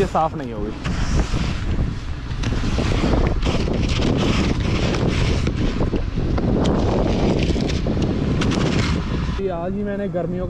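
A snow brush scrapes and sweeps snow off a car.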